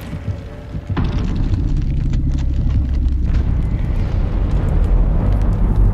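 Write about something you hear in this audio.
Giant claws creak and rumble with a deep, steady drone.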